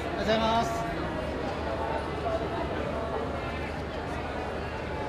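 A lively crowd chatters and calls out nearby.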